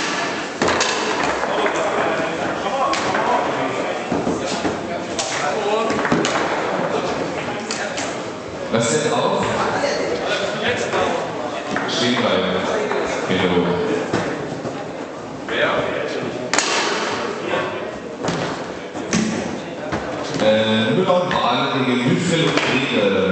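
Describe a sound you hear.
Foosball rods rattle and thud as players spin and slide them.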